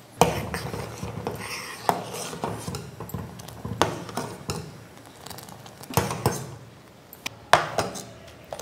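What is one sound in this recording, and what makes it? A metal ladle scrapes and knocks against a steel pot.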